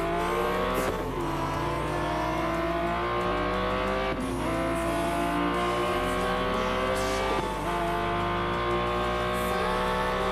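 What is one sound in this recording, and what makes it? A racing car engine roars at high revs, rising in pitch and dropping sharply with each gear change.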